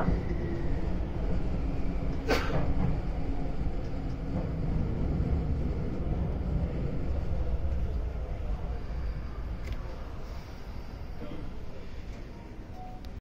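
A train rumbles along the tracks, slowly quieting down.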